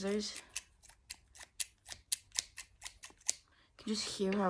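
Scissors snip open and shut rapidly.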